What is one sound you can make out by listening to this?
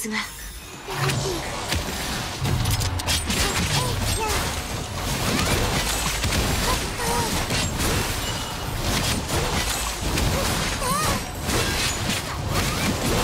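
Sword slashes and energy blasts hit in quick succession.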